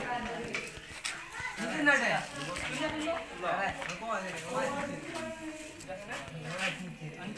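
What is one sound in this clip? Hands scoop and squish rice on leaf plates.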